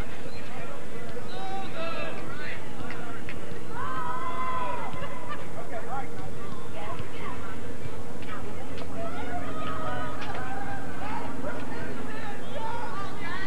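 Young women shout to each other across an open playing field.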